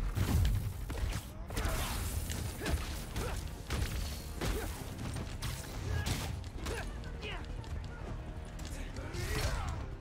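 Video game combat sounds clash and thud with impacts.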